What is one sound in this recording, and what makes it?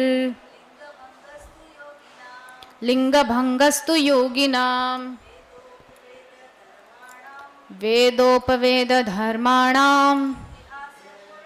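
A young woman chants melodically into a microphone, in short sung phrases.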